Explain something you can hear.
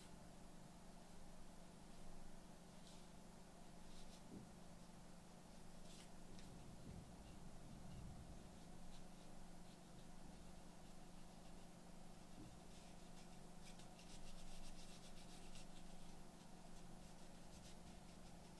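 Leather creaks and rustles softly in hands.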